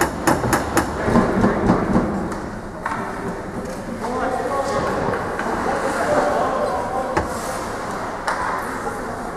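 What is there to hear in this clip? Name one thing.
Hockey sticks clack sharply against the puck and the ice in a large echoing rink.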